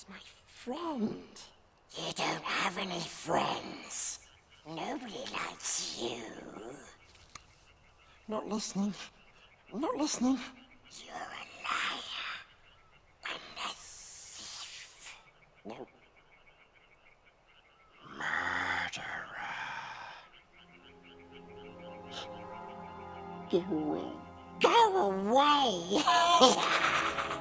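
A creature speaks in a raspy, hissing voice, by turns pleading and menacing.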